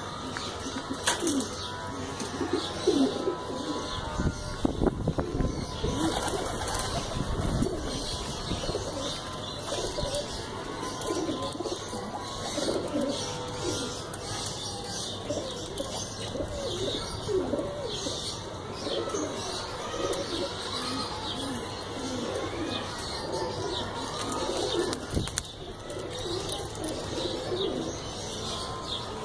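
Domestic pigeons coo.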